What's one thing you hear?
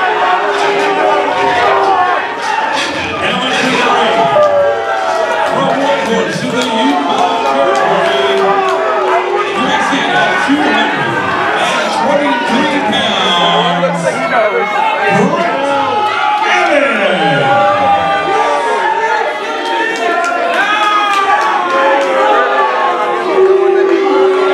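A man announces loudly through a microphone and loudspeakers in an echoing hall.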